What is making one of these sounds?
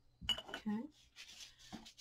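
Paper rustles softly.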